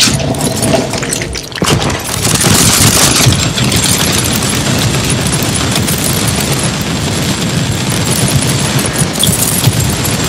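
Gunfire and explosions crackle in rapid bursts.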